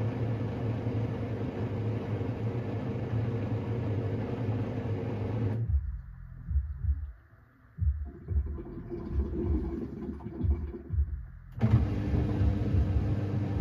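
A washing machine hums and rumbles steadily.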